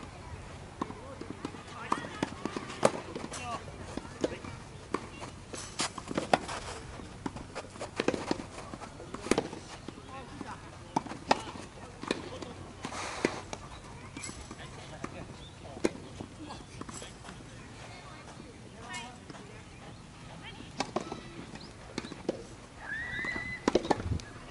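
Tennis balls are struck with rackets, with sharp pops going back and forth.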